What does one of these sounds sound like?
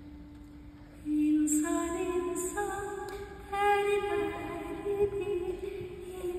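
A woman sings a sustained melody through a microphone in a large hall.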